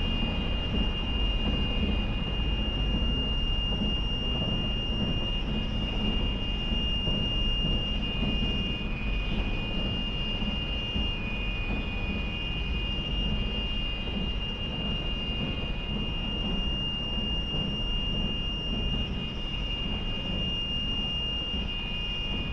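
An aircraft engine drones steadily with a low rumble.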